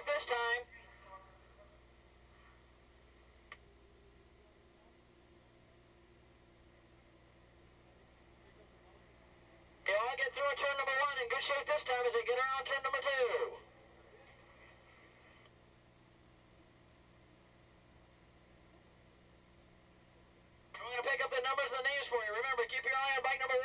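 Racing motorcycle engines scream at high revs, rising and falling as the bikes pass.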